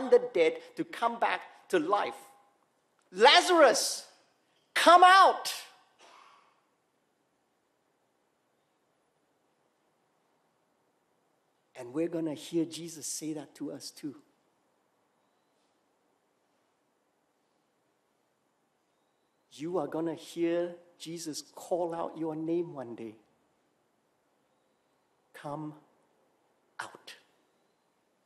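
A middle-aged man preaches with animation into a microphone, pausing between phrases.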